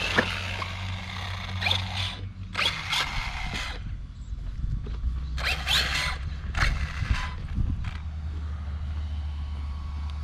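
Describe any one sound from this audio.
Plastic wheels crunch and skid on loose dirt.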